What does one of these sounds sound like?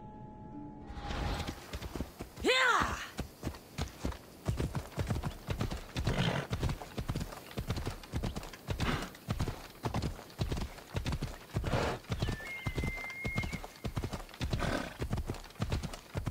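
Hooves clop on a dirt path at a steady gallop.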